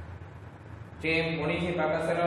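A man speaks up close.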